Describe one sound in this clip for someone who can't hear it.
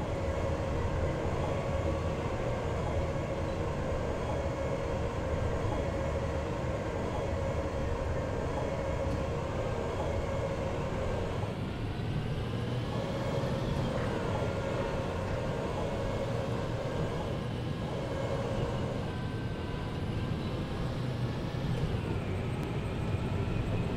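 A tank engine rumbles and roars steadily.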